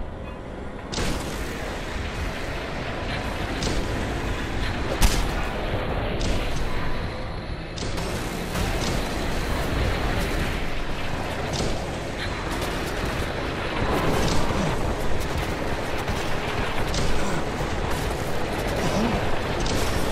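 An energy rifle fires rapid crackling shots.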